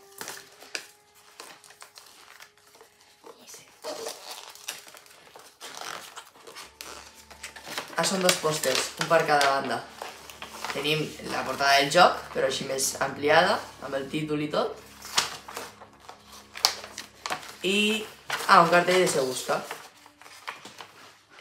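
Paper rustles and crinkles as it is unfolded and handled.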